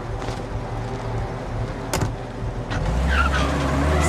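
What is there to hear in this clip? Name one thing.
A car door opens and shuts.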